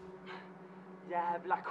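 A young man sings loudly close by.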